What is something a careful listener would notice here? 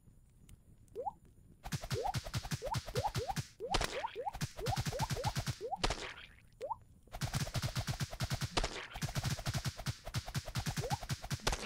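Small cartoon creatures give short rising squeaks when struck.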